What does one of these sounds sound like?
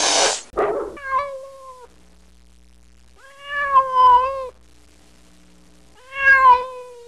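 A cat meows several times in long, drawn-out cries.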